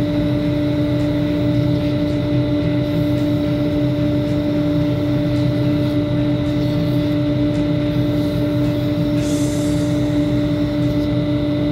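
Wire friction-burns into spinning wood with a hiss.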